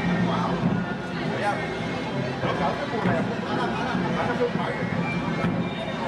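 Drums are beaten in a marching procession.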